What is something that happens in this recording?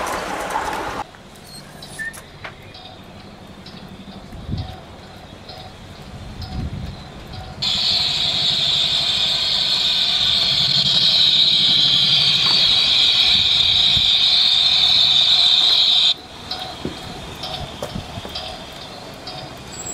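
A model train rattles along its track with a steady clicking rhythm.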